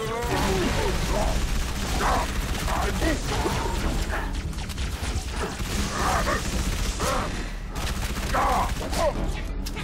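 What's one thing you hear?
Energy blasts crackle and hiss.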